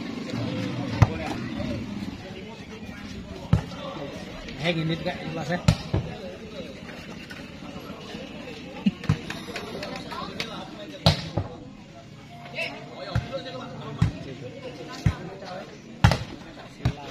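A volleyball is struck with sharp slaps outdoors.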